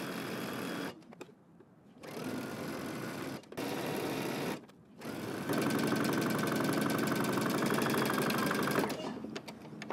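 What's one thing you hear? A sewing machine stitches rapidly in bursts.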